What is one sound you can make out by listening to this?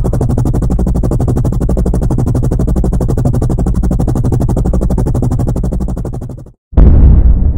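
Helicopter rotor blades chop rapidly overhead and fade as they fly off.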